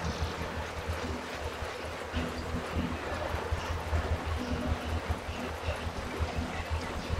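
An indoor bike trainer hums and whirs with a pulsing beat as someone pedals hard.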